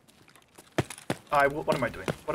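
A man speaks into a close microphone.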